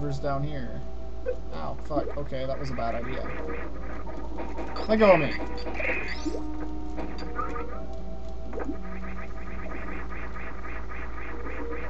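A rapid whirring spin sound pulses over and over.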